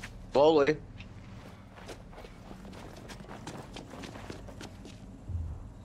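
Footsteps thud quickly on a hard path.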